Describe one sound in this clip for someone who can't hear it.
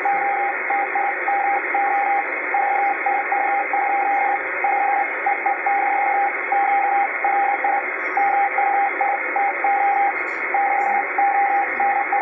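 A radio receiver beeps out Morse code in quick on-off tones.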